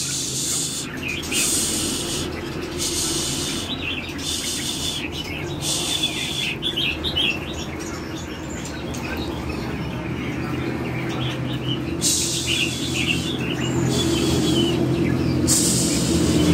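Small birds chirp and twitter nearby.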